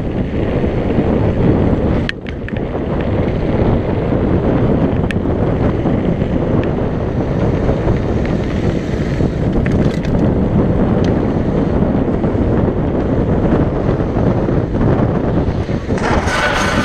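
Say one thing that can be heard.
Mountain bike tyres rumble on a rough paved road.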